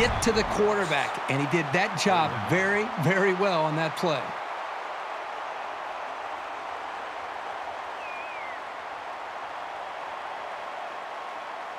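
A large stadium crowd roars steadily in the distance.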